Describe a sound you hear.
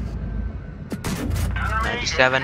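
A tank cannon fires with a sharp bang.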